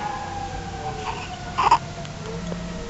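A newborn baby makes soft cooing sounds close by.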